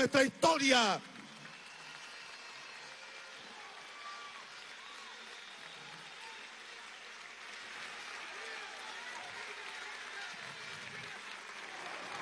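A large crowd applauds in a big hall.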